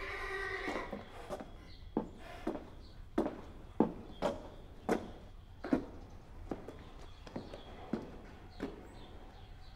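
Footsteps tap across a hard floor at a steady pace.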